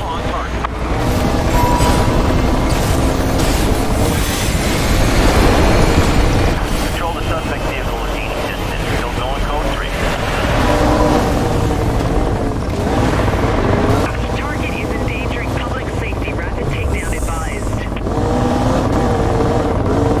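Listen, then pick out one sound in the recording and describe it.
A sports car engine roars at high speed, rising and falling in pitch as it shifts gears.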